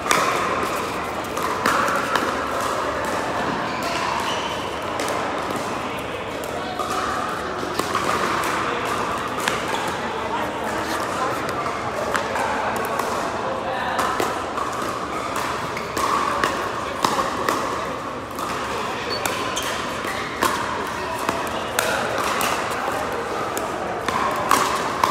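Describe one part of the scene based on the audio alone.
Paddles strike a plastic ball with sharp hollow pops in a large echoing hall.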